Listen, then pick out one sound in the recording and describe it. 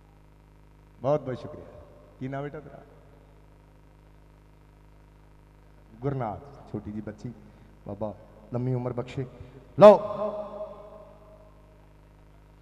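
A man speaks with animation through a microphone and loudspeakers, in short bursts.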